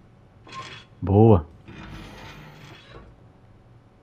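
A heavy safe door swings open with a creak.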